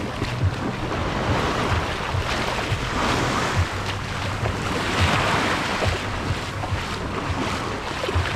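Footsteps crunch on wet sand.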